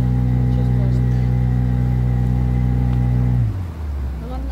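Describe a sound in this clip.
A small boat's motor drones steadily, then cuts out.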